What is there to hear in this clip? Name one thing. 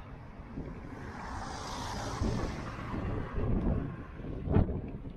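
A small car drives past close by.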